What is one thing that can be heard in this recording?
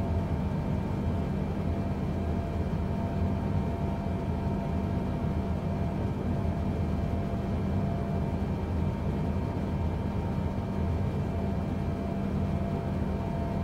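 A jet airliner's engines roar steadily with a low, even rumble.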